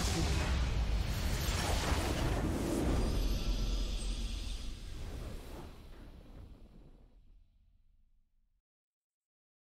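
A deep, booming explosion rumbles and slowly fades away.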